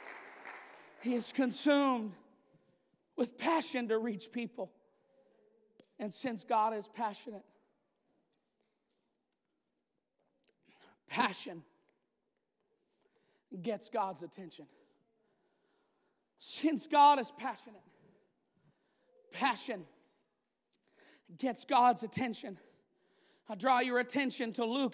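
A man preaches with animation into a microphone, over loudspeakers in a large hall, with pauses between phrases.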